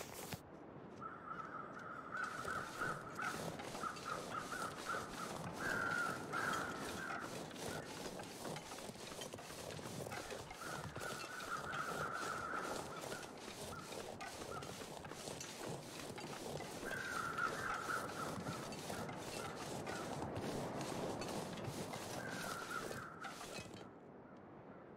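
Wind blows and whistles.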